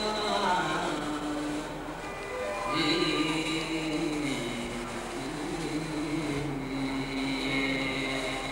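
Music with singing plays over loudspeakers.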